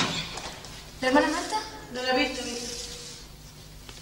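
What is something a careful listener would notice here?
A woman calls out loudly nearby.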